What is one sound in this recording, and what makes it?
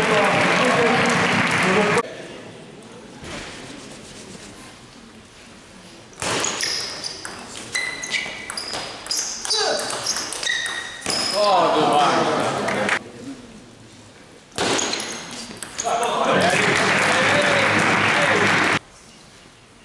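A crowd applauds and cheers loudly in a large echoing hall.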